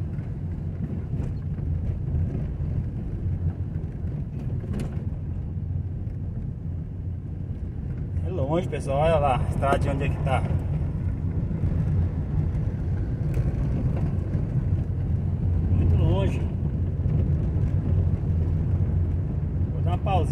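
A vehicle engine rumbles steadily, close by.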